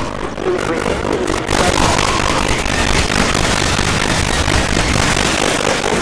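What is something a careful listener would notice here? Gunfire cracks and booms.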